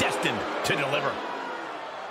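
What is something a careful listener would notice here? Bodies slam hard onto a wrestling mat.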